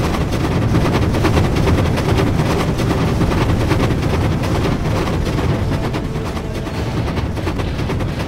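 A steam train chugs along a track.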